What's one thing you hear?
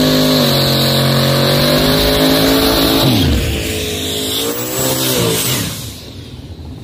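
Race car engines roar loudly and rev up.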